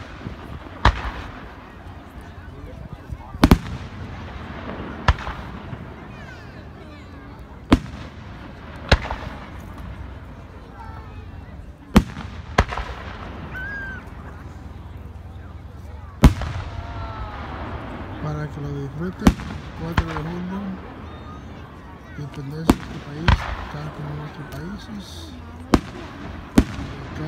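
Fireworks burst with loud booming bangs that echo away.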